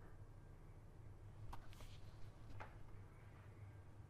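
A small object is set down on a wooden table with a light knock.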